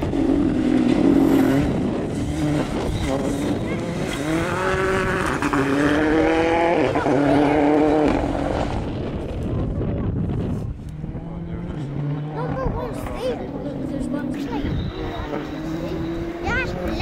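A rally car engine roars and revs hard through the gears.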